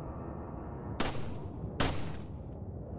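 A pistol fires two sharp shots.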